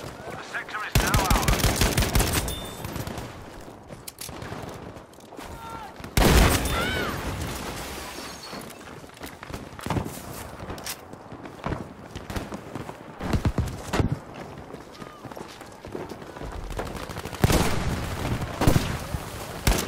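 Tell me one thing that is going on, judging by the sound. A rifle fires in rapid bursts of shots.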